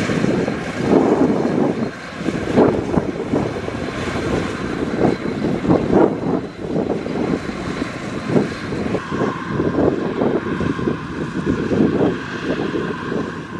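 A combine harvester's engine drones steadily.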